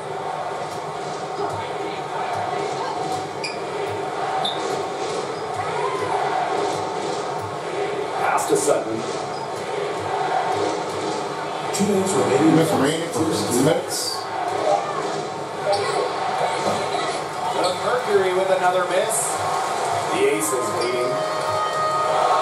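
A large arena crowd murmurs steadily.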